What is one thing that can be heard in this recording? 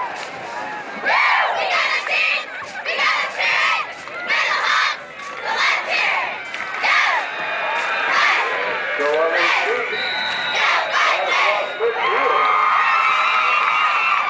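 A group of young women chants a cheer in unison outdoors.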